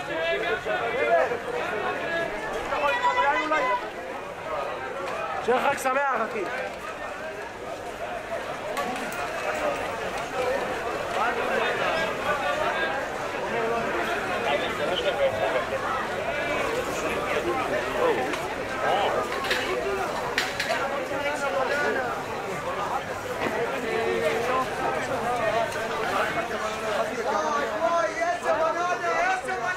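A busy crowd of men and women chatters all around outdoors.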